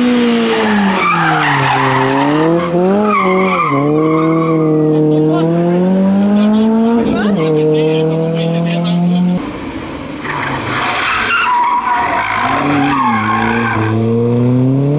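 Tyres screech on asphalt as cars slide through a hairpin.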